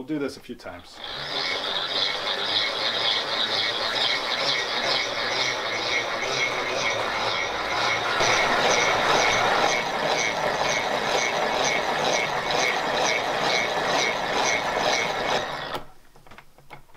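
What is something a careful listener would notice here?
A hand-cranked blender whirs and grinds with a quick, steady rhythm.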